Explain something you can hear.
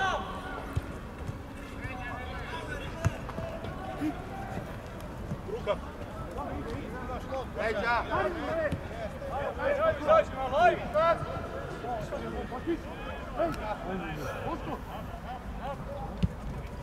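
Players shout to each other across an open field.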